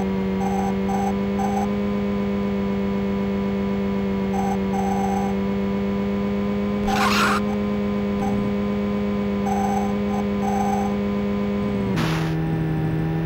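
A buzzy electronic car engine drones steadily, then drops lower in pitch near the end.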